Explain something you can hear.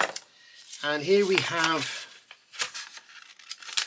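Thin card crinkles and rustles as hands fold it.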